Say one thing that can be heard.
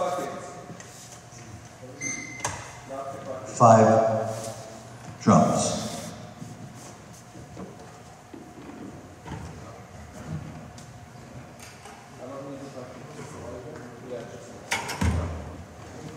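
A piano plays loud chords that ring out in a large echoing hall.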